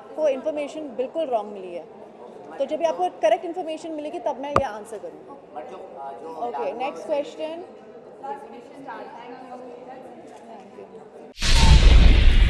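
A young woman speaks calmly into microphones at close range.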